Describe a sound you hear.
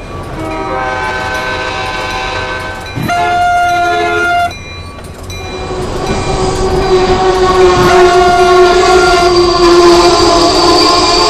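A train horn blasts loudly in long blows.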